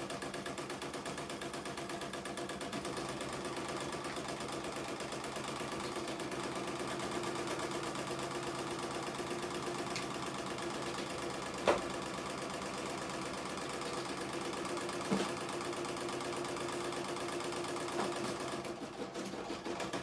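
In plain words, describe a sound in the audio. An embroidery machine hums and stitches rapidly and steadily.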